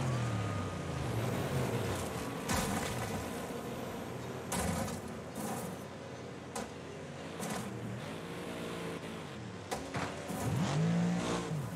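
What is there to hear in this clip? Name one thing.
Metal crashes and bangs as a car flips and hits the ground.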